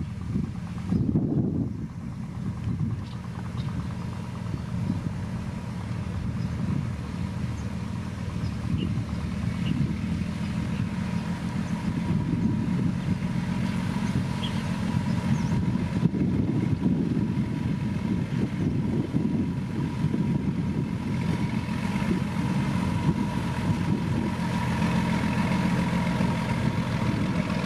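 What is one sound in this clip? A road grader engine drones nearby.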